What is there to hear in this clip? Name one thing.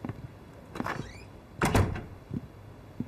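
A door closes with a thud.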